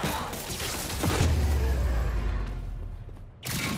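A loud blast booms.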